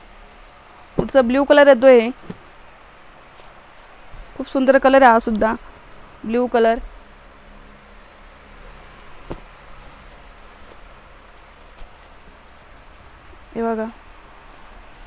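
A woman speaks with animation in short bursts, close to a microphone.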